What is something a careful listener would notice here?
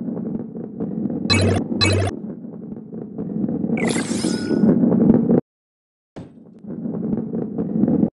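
A ball rolls along a track with a low, steady rumble.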